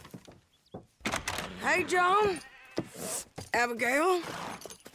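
A man shouts loudly outdoors.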